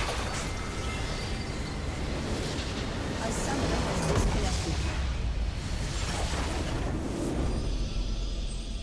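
Spell effects burst and crackle in a game fight.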